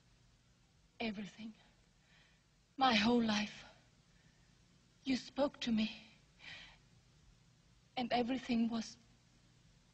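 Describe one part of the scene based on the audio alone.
A woman speaks with emotion, close by.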